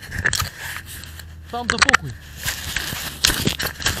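Fabric rubs and rustles against a microphone.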